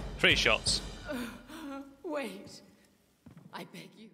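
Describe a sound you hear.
A woman pleads in a strained, breathy voice.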